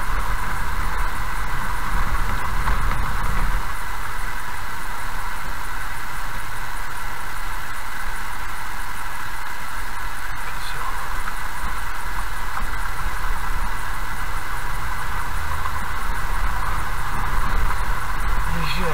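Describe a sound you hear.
A car rumbles slowly along a gravel road.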